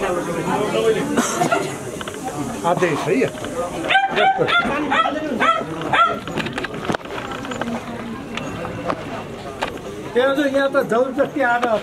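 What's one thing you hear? A crowd of men talk over one another close by.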